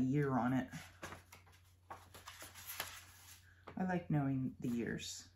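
Paper pages rustle as a booklet is leafed through.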